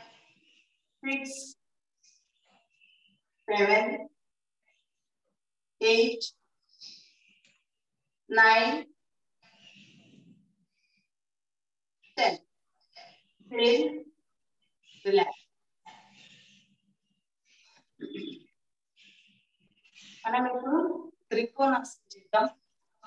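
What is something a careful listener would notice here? A woman speaks calmly in short phrases, close by.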